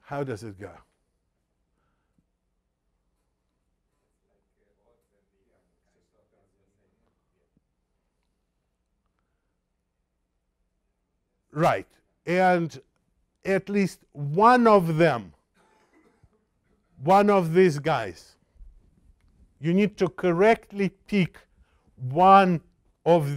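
An elderly man lectures calmly through a microphone, with pauses.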